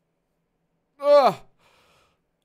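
A young man gives a sharp high shout.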